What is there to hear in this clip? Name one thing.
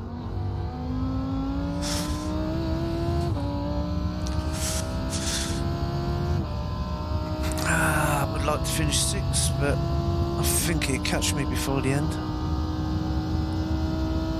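A racing car engine roars and climbs in pitch, dropping briefly with each gear change.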